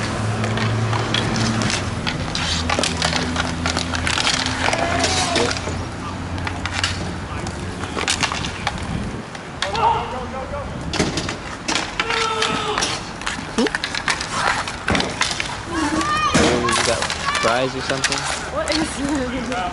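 Hockey sticks clack against the ball and each other.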